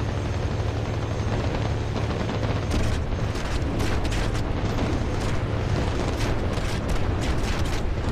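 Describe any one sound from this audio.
A propeller plane's engine drones loudly and steadily.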